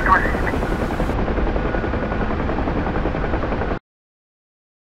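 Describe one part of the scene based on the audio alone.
A helicopter engine and rotor drone steadily from inside the cockpit.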